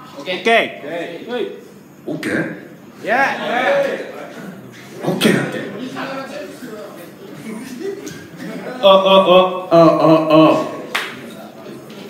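A young man talks loudly through a microphone over loudspeakers in an echoing hall.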